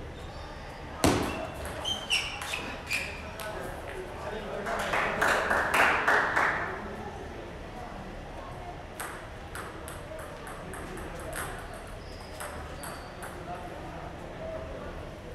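A ping-pong ball clicks back and forth on a table and paddles in a large echoing hall.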